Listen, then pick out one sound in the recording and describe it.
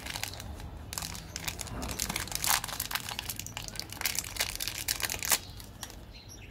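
A plastic candy wrapper crackles as it is twisted open.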